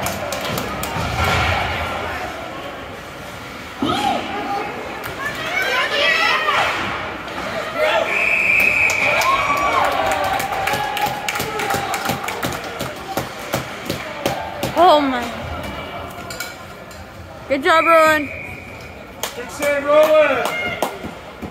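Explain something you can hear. Adult spectators shout and cheer close by in a large echoing rink.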